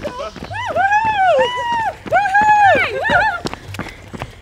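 Young men and women nearby whoop and cheer loudly.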